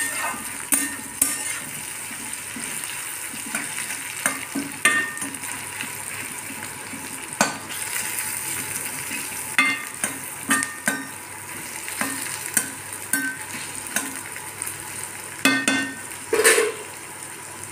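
A metal spatula scrapes and clinks against a pan while food is stirred.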